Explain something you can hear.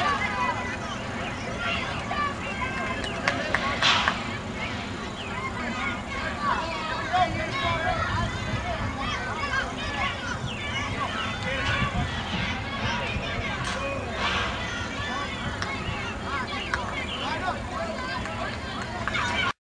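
Children call out across an open field.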